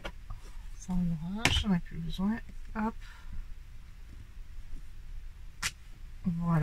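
Paper rustles softly under a pair of hands.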